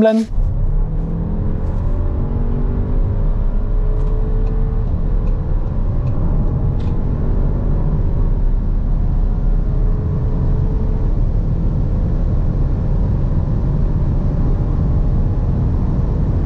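A car engine roars steadily as the car speeds up.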